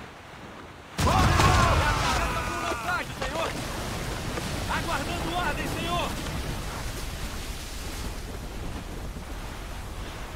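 Waves crash and roar against a sailing ship.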